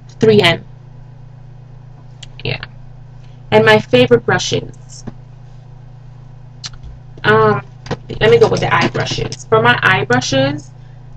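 A young woman speaks close to a microphone, casually, in short bursts with pauses.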